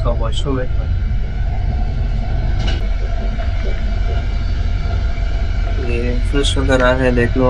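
A steady low rumble fills the background.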